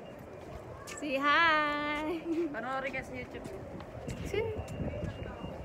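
A young woman speaks excitedly close to the microphone.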